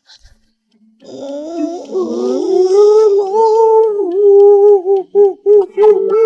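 A young man wails and sobs loudly.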